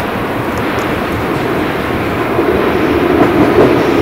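A train rumbles faintly as it approaches from far off.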